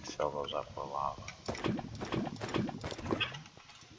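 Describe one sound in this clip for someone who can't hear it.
Lava bubbles and pops nearby.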